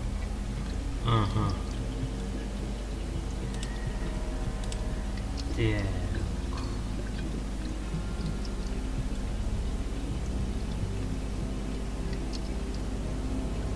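Water pours and gurgles into a metal tank.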